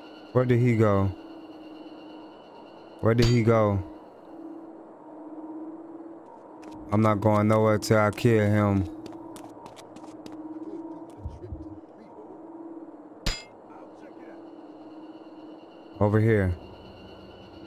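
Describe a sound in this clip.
A man speaks loudly and with animation into a microphone in short bursts.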